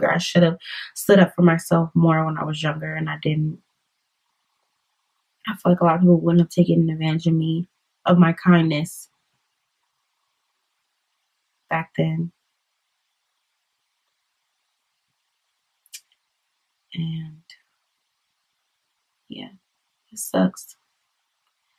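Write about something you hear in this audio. A young woman speaks calmly and close up, with long pauses.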